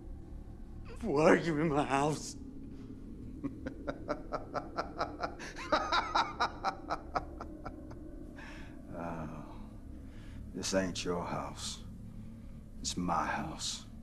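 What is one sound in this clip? A man speaks in a low, tense voice.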